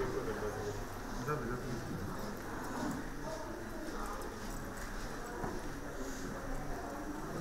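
A paper gift bag rustles.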